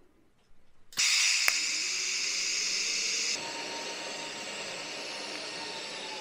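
A welding torch hisses and buzzes steadily.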